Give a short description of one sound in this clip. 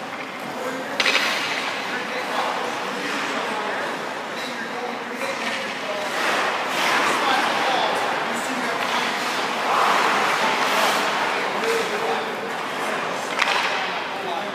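A hockey stick knocks sharply on the ice.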